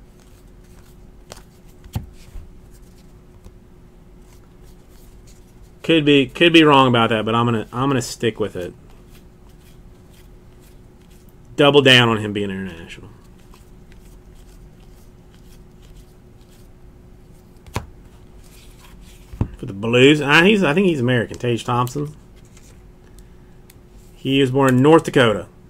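Trading cards slide and flick against each other in a hand.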